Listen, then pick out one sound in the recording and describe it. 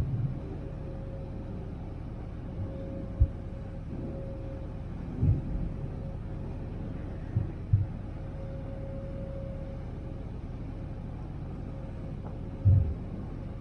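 A boat's engine rumbles steadily.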